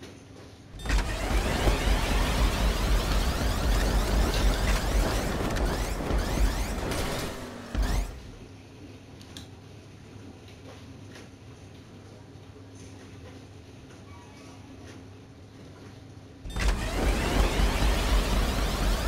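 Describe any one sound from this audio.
A car engine roars as a car speeds over a rough road.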